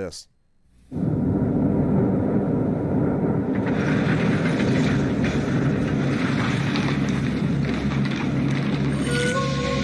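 Dramatic music plays loudly through a speaker.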